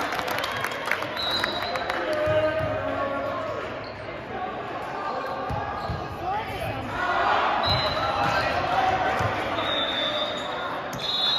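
A crowd of young men chatter and call out in a large echoing gym.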